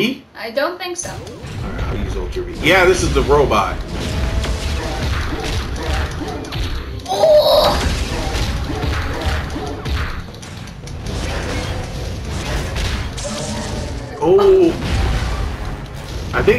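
Heavy blows and metallic crashes ring out as giant robots fight.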